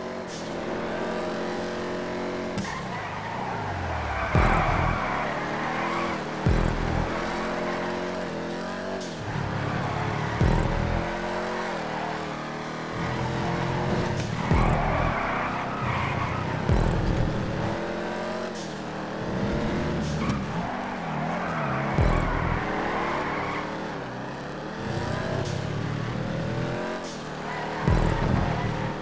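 A race car engine revs hard, rising in pitch and dropping with each gear shift.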